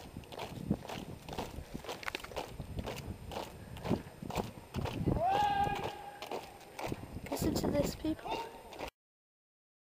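Many boots march in step on hard ground.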